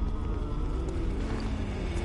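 Footsteps tap on stone paving.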